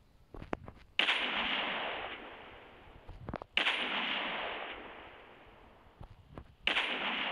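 A sniper rifle fires loud single shots that ring out and slowly fade.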